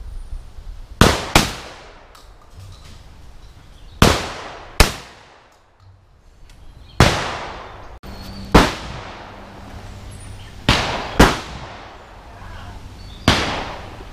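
A shotgun fires loud shots, each ringing out in the open air.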